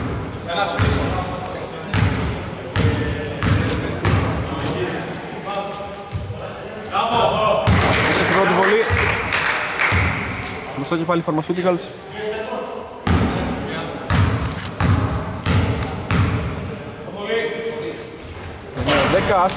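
A basketball bounces on a wooden court, echoing in a large hall.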